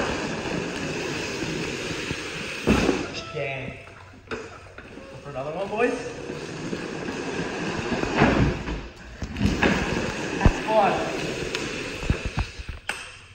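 Hard plastic wheels rumble and scrape across a concrete floor.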